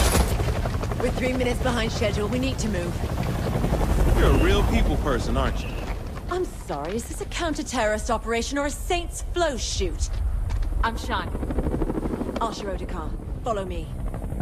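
A young woman speaks calmly and briskly.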